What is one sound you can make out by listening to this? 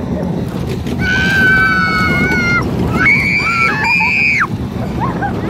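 Young women scream shrilly.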